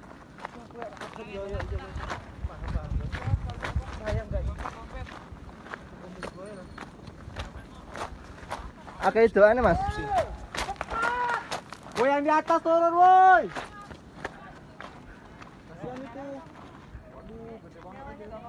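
A man speaks excitedly, close by.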